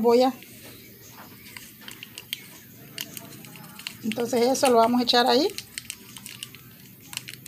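A plastic tube crinkles as it is squeezed.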